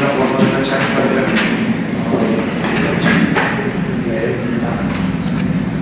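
Paper sheets rustle and flap as a man lifts them.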